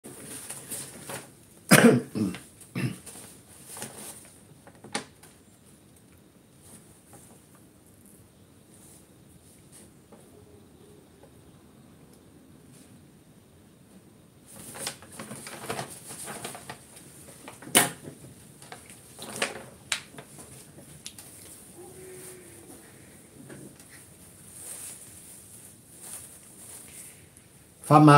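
An elderly man talks calmly and close to a microphone.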